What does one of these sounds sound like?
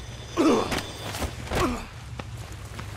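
A man grunts and groans as he is wrestled to the floor.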